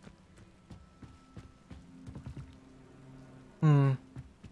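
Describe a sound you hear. Footsteps run quickly over stone and wooden boards.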